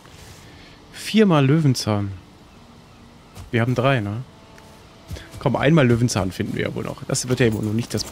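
A man speaks with animation, close to a microphone.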